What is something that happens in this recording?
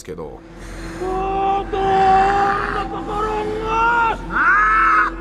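A man shouts forcefully.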